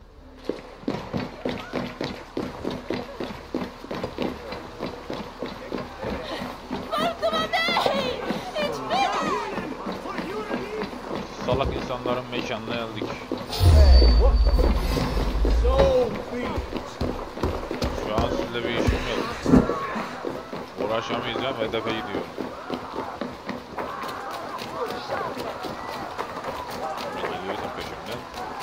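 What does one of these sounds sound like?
Footsteps patter quickly on stone and wooden boards.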